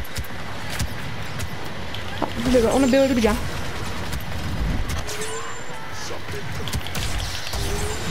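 Energy blades clash with crackling sparks.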